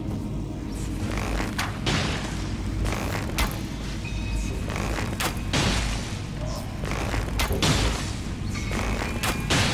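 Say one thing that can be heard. Heavy armoured footsteps thud on wooden boards.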